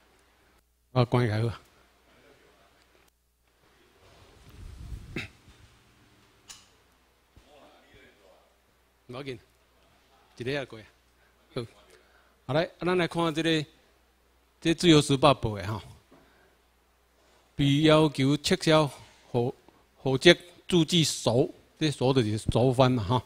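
A man speaks into a microphone through a loudspeaker in a room, lecturing with pauses.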